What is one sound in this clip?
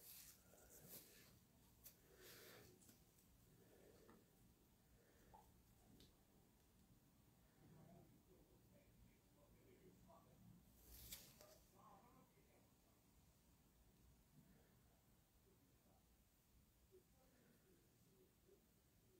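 Rubber gloves rustle and creak softly.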